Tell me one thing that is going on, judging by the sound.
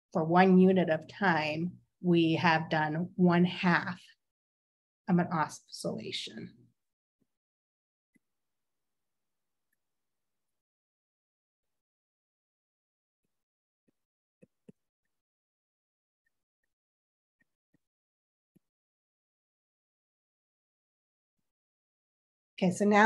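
A woman speaks calmly into a close microphone, as if on an online call.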